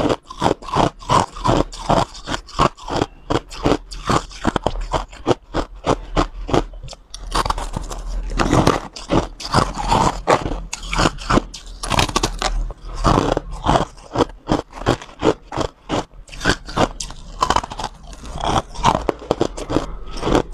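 A young woman crunches and chews ice close to a microphone.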